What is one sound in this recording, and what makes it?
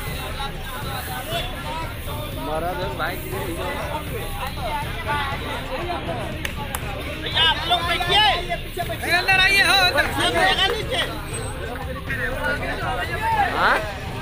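A crowd of men murmurs and talks outdoors.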